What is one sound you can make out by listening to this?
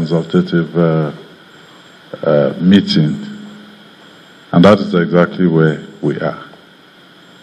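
A middle-aged man speaks calmly and close to a microphone, in short phrases with pauses.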